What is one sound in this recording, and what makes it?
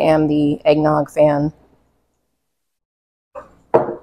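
A woman pours liquid into a mug.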